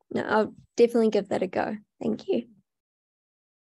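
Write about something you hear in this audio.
A young woman talks cheerfully over an online call.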